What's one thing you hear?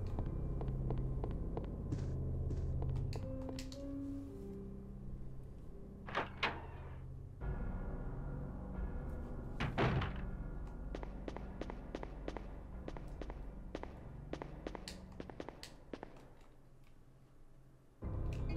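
Footsteps tap steadily across a hard floor.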